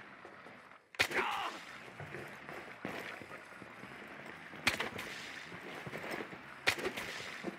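Gunshots ring out sharply, a few at a time.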